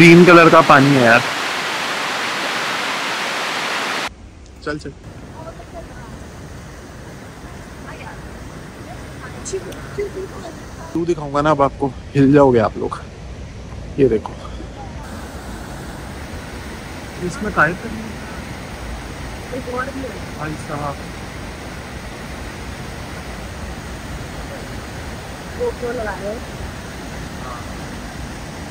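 A river rushes over rocks and falls.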